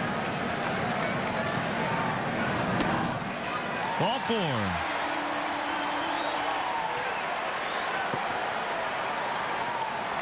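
A large crowd murmurs steadily in the stands outdoors.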